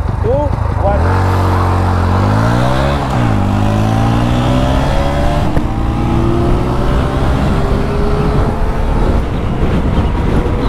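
An electric scooter motor whines, rising in pitch as the scooter speeds up.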